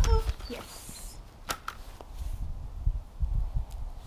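A plastic hoop drops onto the grass with a light thud.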